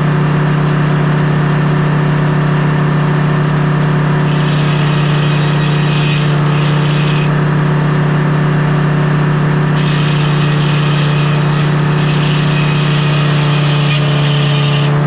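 A large circular saw whines as it spins.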